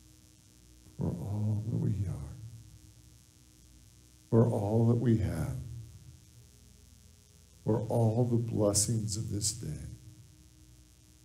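A middle-aged man speaks calmly through a microphone in short phrases, with pauses between them.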